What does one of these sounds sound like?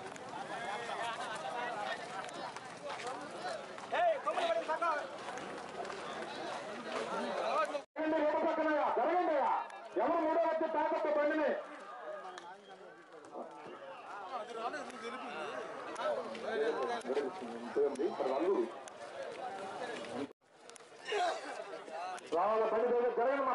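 A crowd of men talks and shouts outdoors.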